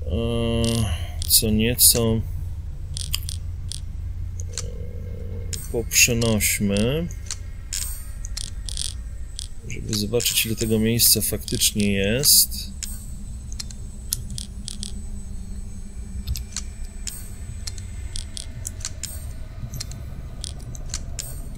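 Soft menu clicks tick again and again.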